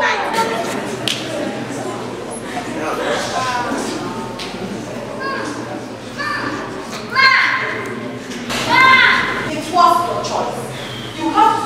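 A young woman cries out and wails with emotion.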